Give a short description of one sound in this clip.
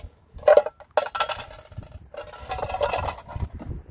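Water pours into a pot.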